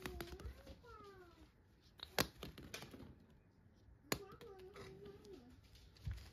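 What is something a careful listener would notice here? Cats scuffle and rustle on crinkly fabric nearby.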